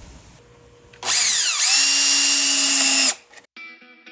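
A cordless drill whirs loudly as it drives into wood.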